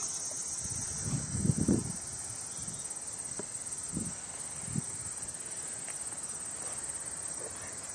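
Wasps buzz softly at close range.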